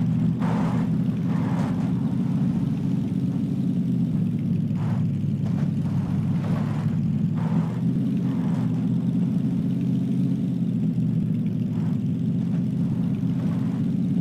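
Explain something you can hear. A car engine drones steadily over rough ground.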